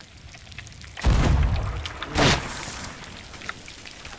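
Waves wash onto a shore.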